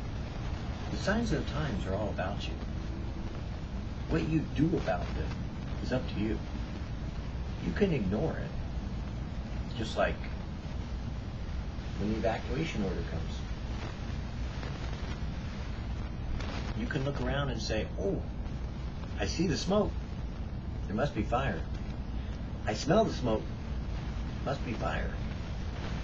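A middle-aged man talks calmly and close by, with pauses.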